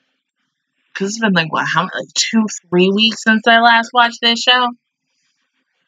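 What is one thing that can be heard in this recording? A young woman speaks with animation close to a headset microphone.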